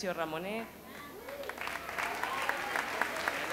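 A woman speaks with animation into a microphone over loudspeakers in a large hall.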